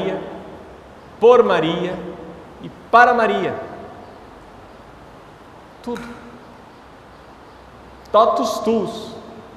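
A man speaks calmly into a microphone in an echoing hall, with long pauses.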